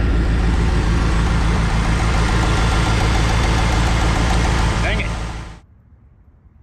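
A car engine idles loudly and steadily, then cuts off.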